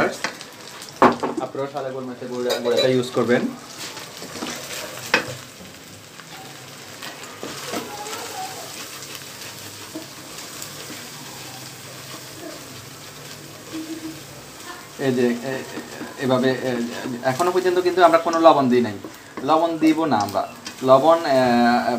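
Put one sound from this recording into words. A spatula scrapes and clatters against a metal wok.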